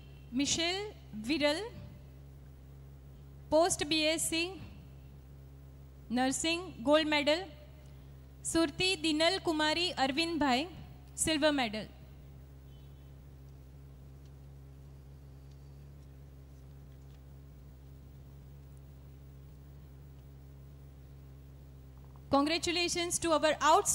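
A woman announces over a loudspeaker.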